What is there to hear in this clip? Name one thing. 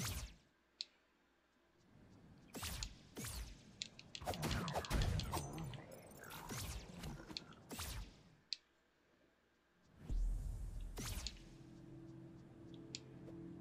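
Video game sound effects whoosh and clang.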